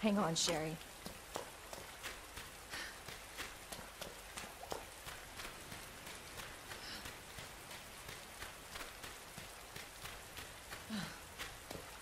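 Footsteps tread steadily on soft ground.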